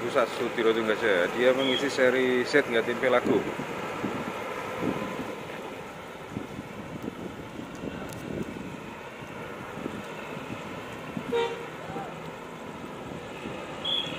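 A bus engine rumbles as the bus pulls away and fades into the distance.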